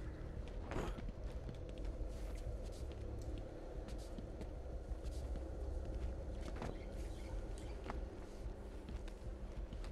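Footsteps tread on a hard stone floor.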